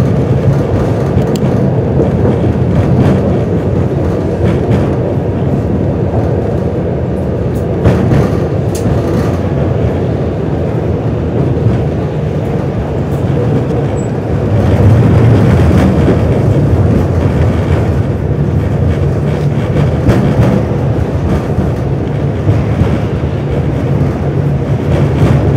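Traffic passes by outside.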